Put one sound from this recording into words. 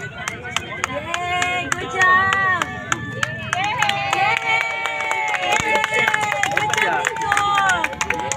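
Men nearby shout and cheer with excitement.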